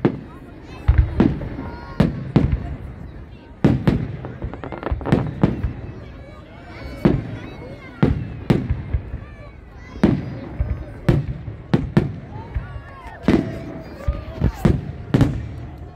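Fireworks bang loudly, over and over.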